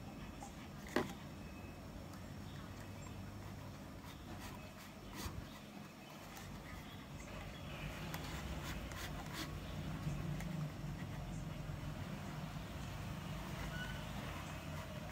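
Cord rustles and rubs as it is braided.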